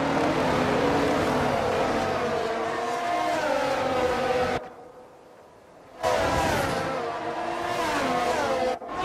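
Racing car engines whine loudly as the cars speed past, shifting pitch up and down.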